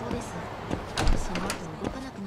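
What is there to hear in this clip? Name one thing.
A door bangs open.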